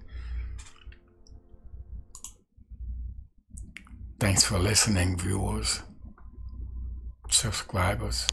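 A middle-aged man speaks calmly and close to a microphone.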